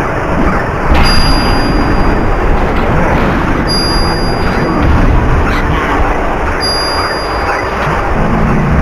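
Video game chimes ring out briefly several times.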